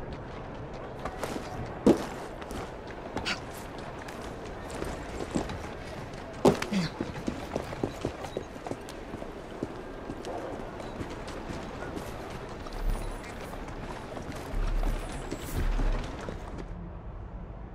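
Footsteps thud and scrape on stone as a figure climbs and runs.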